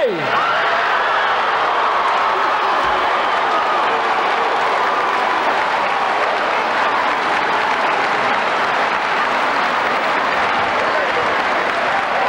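A large crowd applauds steadily.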